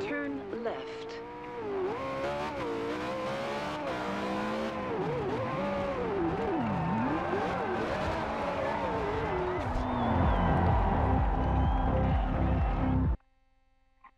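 A sports car engine roars, its pitch rising and falling as it revs.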